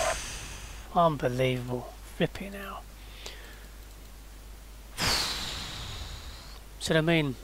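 A man speaks calmly into a headset microphone, close by.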